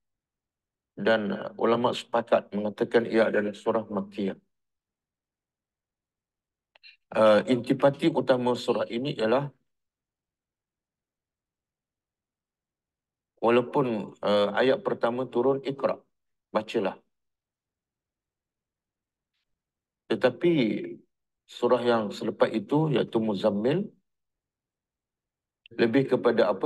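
An elderly man speaks calmly into a close microphone, in phrases with long pauses.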